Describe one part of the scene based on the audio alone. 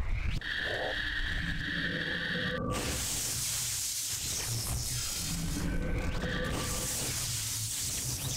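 A robot enemy fires laser bolts.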